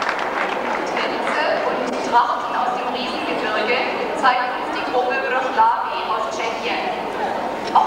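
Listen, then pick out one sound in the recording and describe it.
A young woman speaks calmly into a microphone, heard through loudspeakers.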